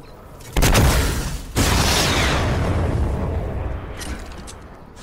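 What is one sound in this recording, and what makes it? A gun fires with loud blasts that roll away in a long echo.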